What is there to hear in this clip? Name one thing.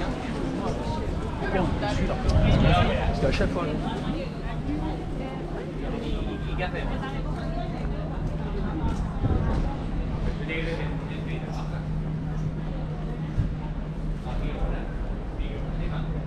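Voices of passers-by chatter nearby outdoors.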